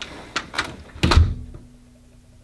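A door swings shut with a heavy thud.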